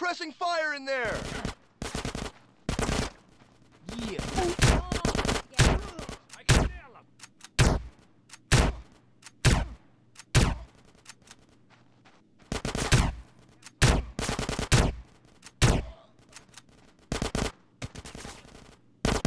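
Shotgun blasts boom again and again, echoing in a hall.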